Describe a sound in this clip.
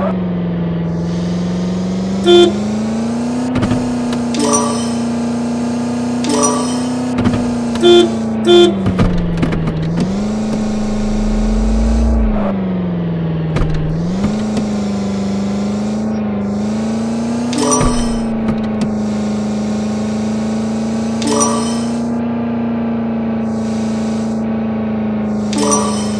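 A car engine hums steadily, its pitch dipping and rising now and then.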